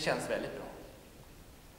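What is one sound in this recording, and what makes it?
A man speaks briefly in an echoing hall.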